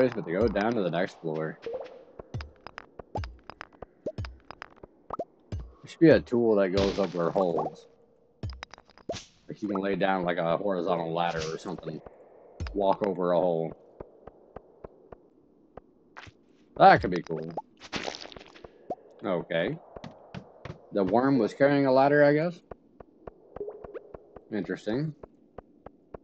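A man talks into a close microphone in a relaxed way, in short bursts with pauses.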